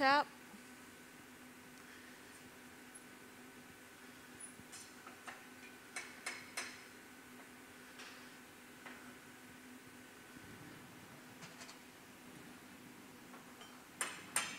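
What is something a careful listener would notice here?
A metal tool clicks and scrapes against hot glass.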